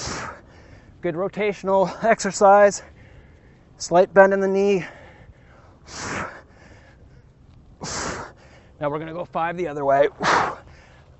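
A man speaks with energy into a close microphone.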